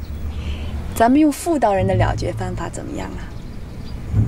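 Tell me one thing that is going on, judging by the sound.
A woman speaks with playful confidence, close by.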